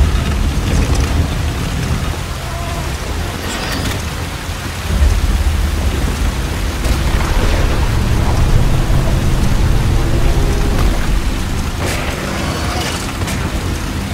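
Heavy rain pours steadily all around.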